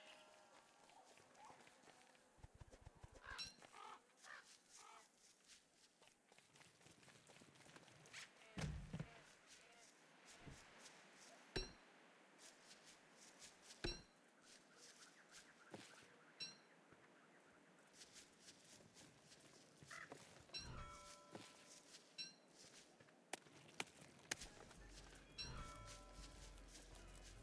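Light footsteps patter across the ground.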